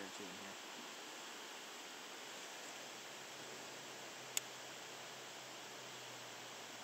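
A small river flows and gurgles.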